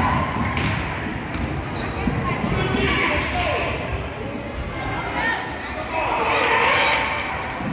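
Spectators call out and shout in an echoing gym.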